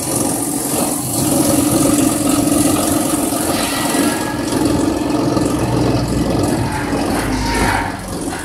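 Dry leaves pour and slide into a metal hopper.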